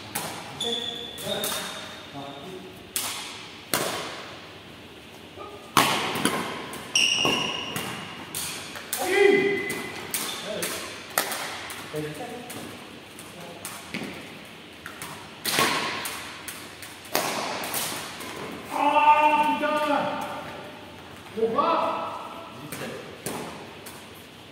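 Rackets smack a shuttlecock back and forth in a large echoing hall.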